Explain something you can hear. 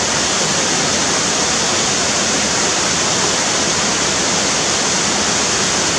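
A waterfall splashes steadily into a pool.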